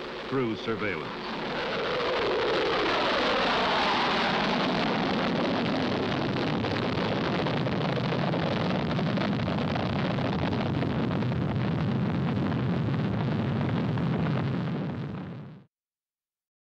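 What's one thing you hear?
A jet engine roars loudly as a plane takes off and passes by.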